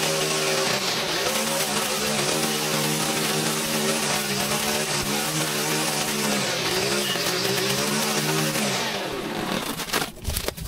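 A string trimmer engine whines steadily, cutting grass, then winds down and stops.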